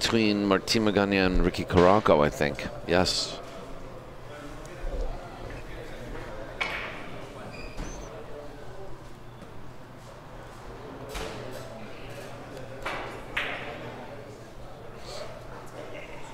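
Billiard balls click together on a table, with quiet gaps between shots.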